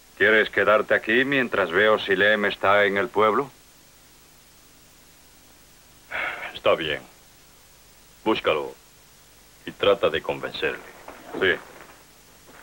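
A middle-aged man talks firmly, close by.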